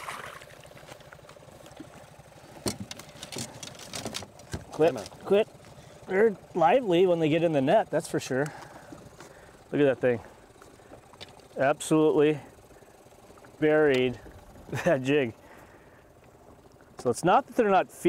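Water laps against a small boat.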